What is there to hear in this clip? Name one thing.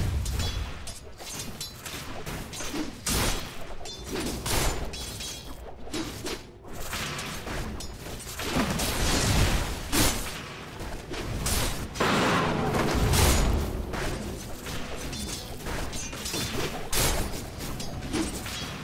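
Game spell effects and weapon hits crash and clash repeatedly.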